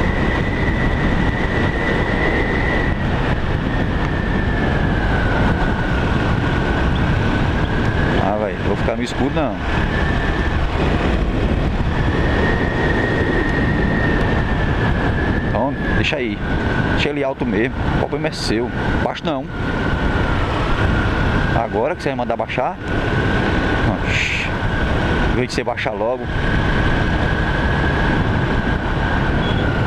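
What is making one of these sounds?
A motorcycle engine hums steadily, its pitch rising and falling.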